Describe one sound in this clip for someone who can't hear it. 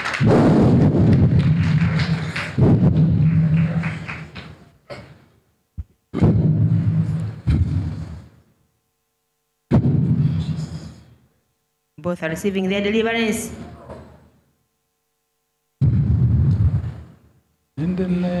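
A man speaks forcefully into a microphone in bursts, with a reverberant echo.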